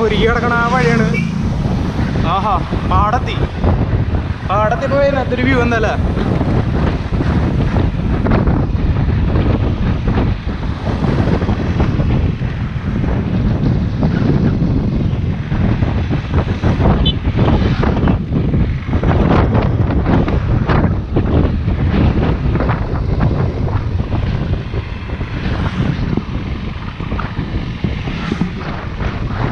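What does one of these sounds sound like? Wind roars and buffets steadily as a bicycle rides along a road.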